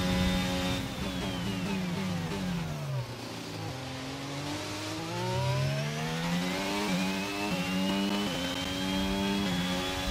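A racing car engine whines high, drops in pitch while braking into a corner, then revs up again through quick gear shifts.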